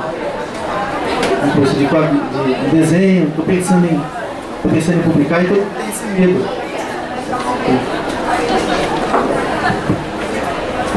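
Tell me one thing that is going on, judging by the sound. A young man speaks calmly into a microphone, heard through a loudspeaker in a large room.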